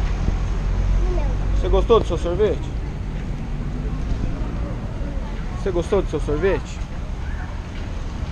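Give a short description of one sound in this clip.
Young girls talk and chatter close by.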